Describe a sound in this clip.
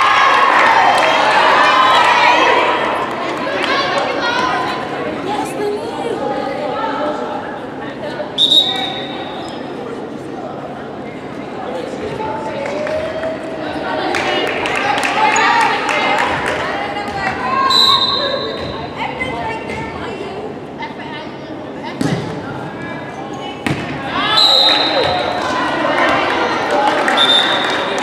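Young women call out and chatter in a large echoing gym.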